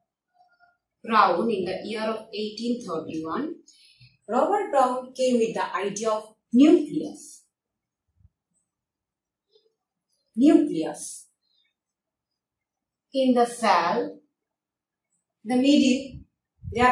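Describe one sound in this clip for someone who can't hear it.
A young woman speaks calmly and clearly, as if teaching.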